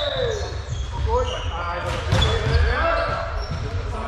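Men shout and call out to each other.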